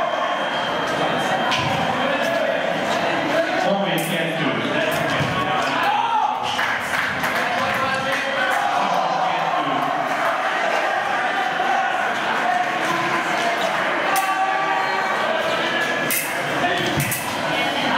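Fencing blades clash and clink together.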